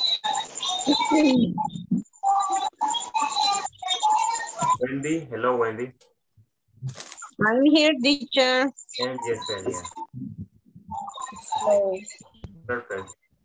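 A man and a woman talk in turn over an online call.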